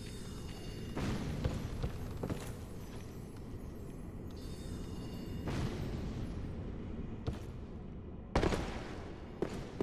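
Metal armour rattles and thuds as a knight rolls across the floor.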